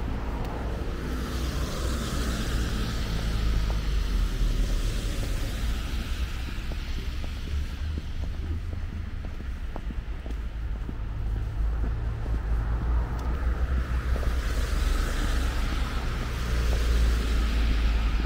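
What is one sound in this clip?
Cars swish past on a wet road.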